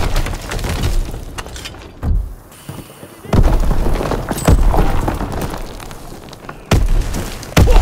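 Heavy gunfire and explosions boom in loud bursts.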